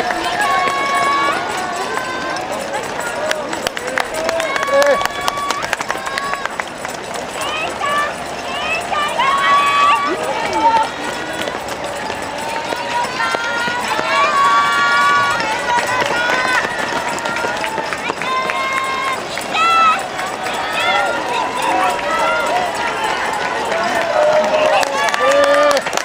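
A crowd of spectators cheers and shouts encouragement outdoors.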